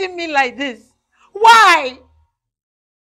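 A woman speaks loudly and with emotion, close by.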